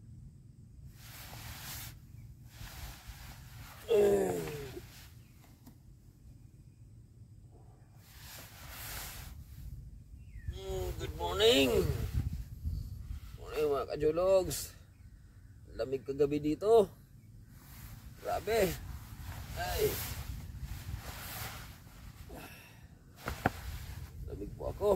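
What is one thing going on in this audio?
Hammock fabric rustles as someone climbs in and shifts about.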